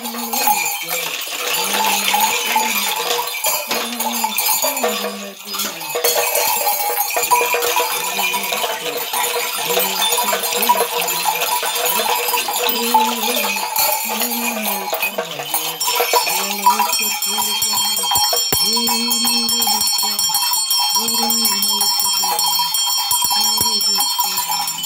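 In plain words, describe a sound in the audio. Rattles of seed pods and shells shake in a steady rhythm.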